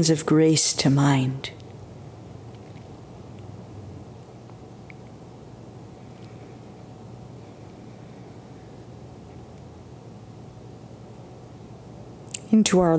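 An older woman speaks calmly into a microphone, with a long pause.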